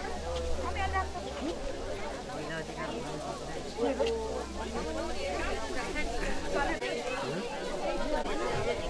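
A crowd of men and women chatter close by.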